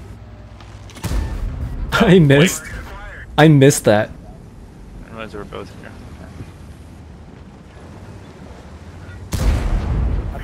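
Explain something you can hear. A tank cannon fires with a deep, heavy boom.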